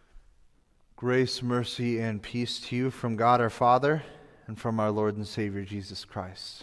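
A young man speaks calmly and clearly into a microphone.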